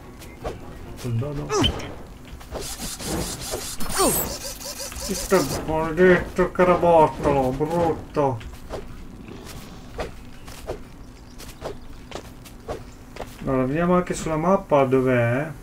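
A young man talks with excitement into a nearby microphone.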